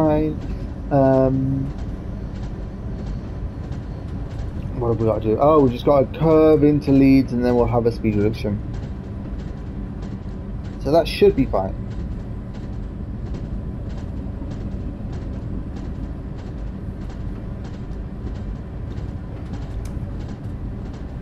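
A train rumbles steadily along the rails.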